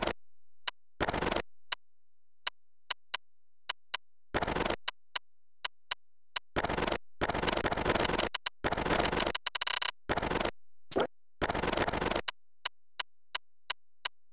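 Short electronic menu clicks tick as a selection moves from item to item.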